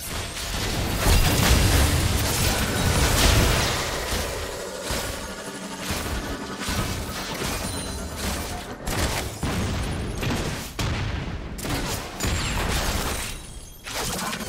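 Game characters' weapons clash and strike.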